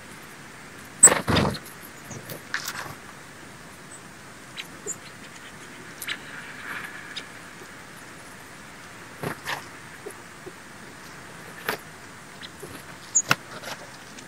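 Small birds chirp sharply now and then.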